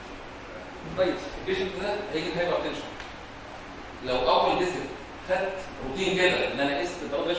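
A man lectures calmly through a microphone.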